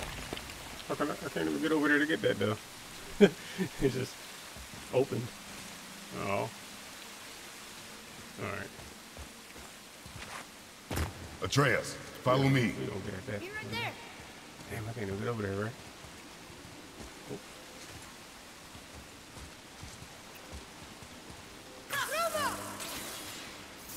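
A young man talks into a close microphone in bursts.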